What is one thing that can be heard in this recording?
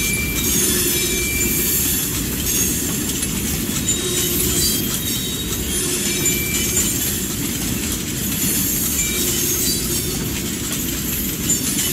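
Wheels squeal faintly against the rails.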